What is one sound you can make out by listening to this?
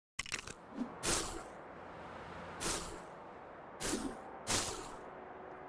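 Whooshing swings rush past again and again.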